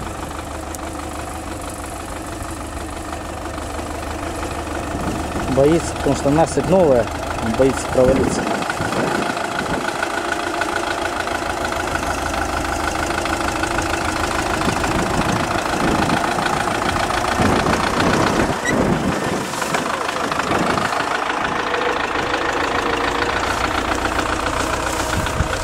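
A tractor engine runs steadily nearby, growing louder as it works.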